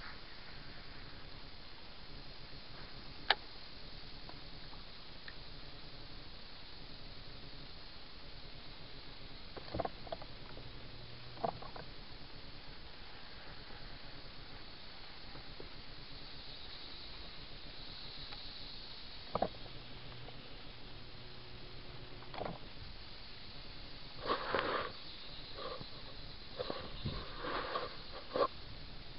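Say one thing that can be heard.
Water laps gently against a boat.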